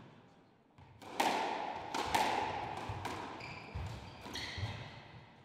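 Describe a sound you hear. A squash ball smacks sharply against the walls, echoing around a hard-walled room.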